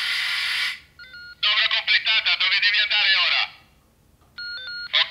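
A model locomotive's speaker gives short electronic beeps.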